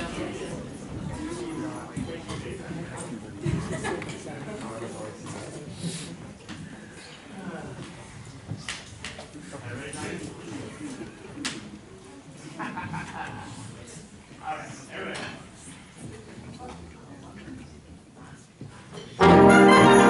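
A concert band plays softly in a large hall, then bursts in loudly.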